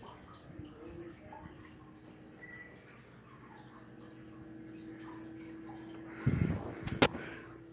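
A ceiling fan whirs and hums steadily.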